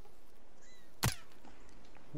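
A single rifle shot cracks sharply nearby.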